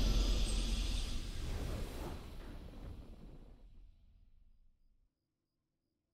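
Triumphant game victory music swells and fades out.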